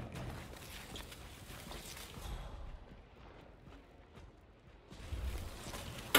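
A body is dragged across a hard floor.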